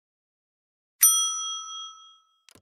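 A small bell rings brightly and fades.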